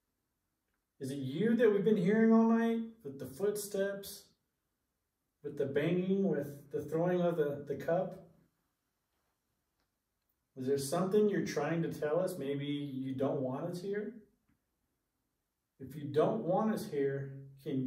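A man speaks calmly and close by, with pauses between phrases.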